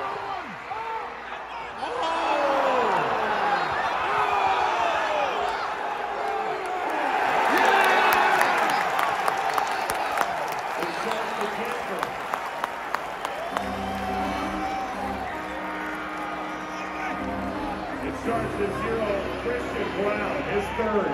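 A large crowd cheers and roars in a huge echoing arena.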